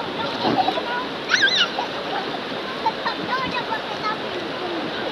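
A young child squeals and shouts playfully nearby.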